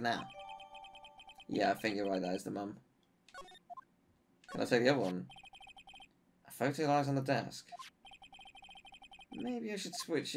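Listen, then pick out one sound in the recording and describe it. Short electronic beeps tick rapidly in bursts.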